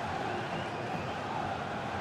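A large crowd cheers steadily in a stadium.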